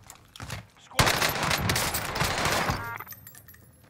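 An automatic gun fires a rapid burst.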